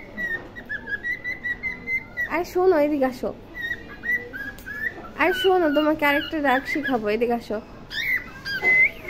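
A cockatiel chirps in short high calls.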